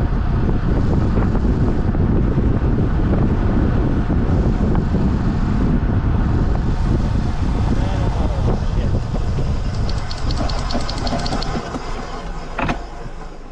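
Tyres rumble loudly over a road.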